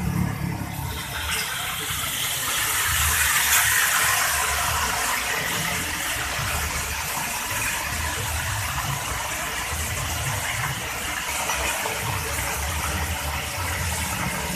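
A fish sizzles and crackles as it fries in hot oil in a wok.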